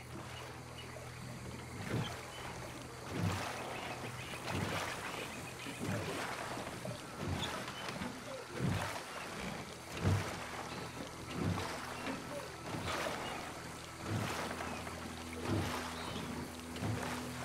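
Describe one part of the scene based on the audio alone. Oars splash and knock rhythmically in water.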